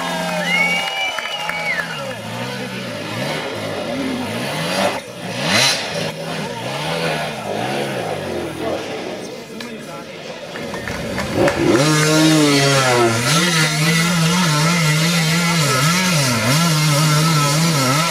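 A dirt bike engine revs hard, rising and falling as it climbs.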